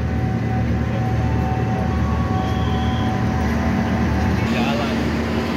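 A train rumbles slowly past close by.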